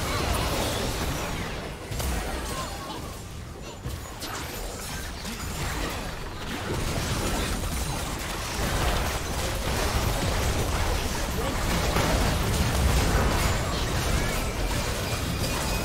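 Spell blasts and clashing weapons crackle and boom in a video game battle.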